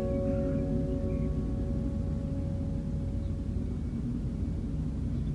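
Kittens purr softly and steadily close by.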